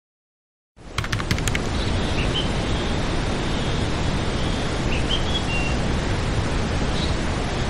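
A waterfall roars steadily as water splashes onto rocks.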